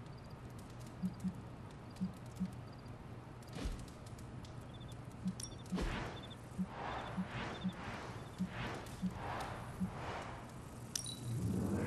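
Soft menu clicks tick as options are selected.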